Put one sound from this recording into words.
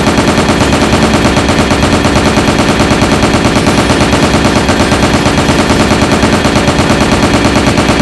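A machine gun fires rapidly and without pause.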